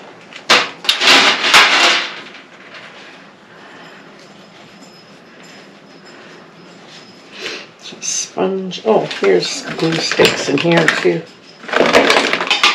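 Plastic craft supplies rattle and clatter as they are handled.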